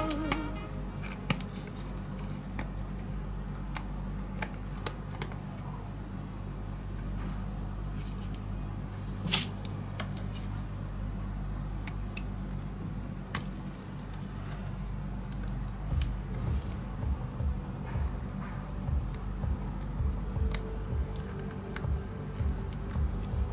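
Glue squeezes out of a plastic bottle.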